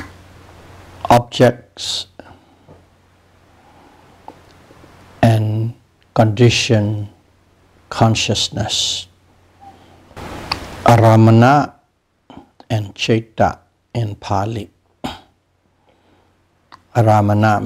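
An elderly man speaks calmly and slowly, close to a microphone, with pauses between phrases.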